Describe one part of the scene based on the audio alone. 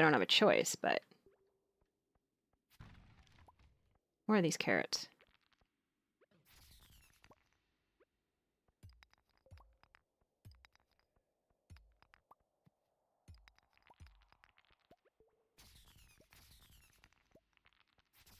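A pickaxe strikes and breaks stones with sharp cracks.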